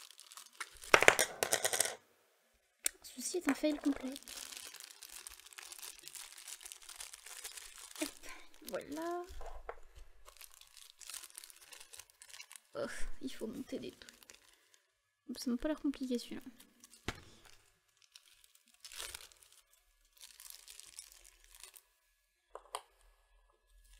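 Plastic capsules clack and knock against a hard surface.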